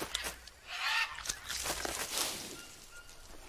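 A blade swishes through leafy plants.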